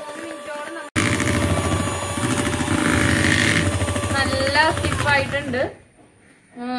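An electric hand mixer whirs loudly.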